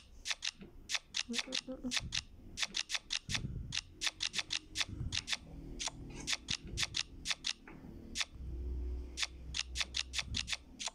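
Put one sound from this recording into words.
Card game sound effects click sharply again and again as cards are moved.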